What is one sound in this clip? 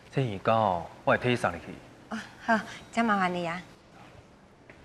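A young woman answers calmly close by.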